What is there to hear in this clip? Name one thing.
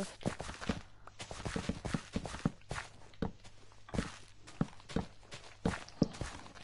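Dull thumps of digging into earth come again and again at a quick pace.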